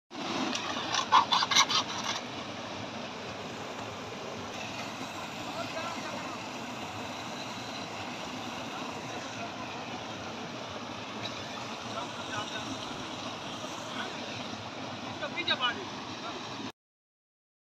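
A mountain stream rushes and splashes steadily over rocks.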